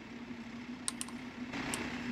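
A generator engine hums steadily close by.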